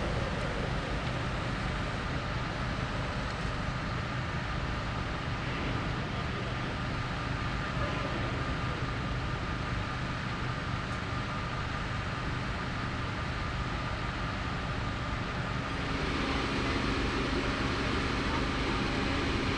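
A fire engine's motor idles with a steady low hum close by.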